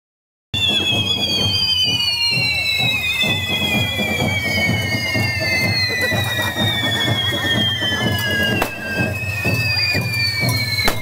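Fireworks hiss and crackle loudly nearby.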